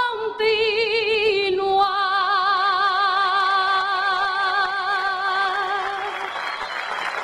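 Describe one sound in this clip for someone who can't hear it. A young woman sings with vibrato into a microphone over a loudspeaker.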